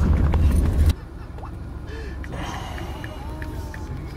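A young boy talks and giggles softly close by.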